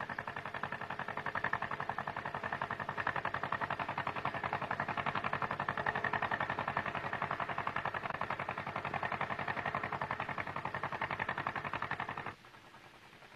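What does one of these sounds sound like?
A car engine idles with a steady rumbling putter.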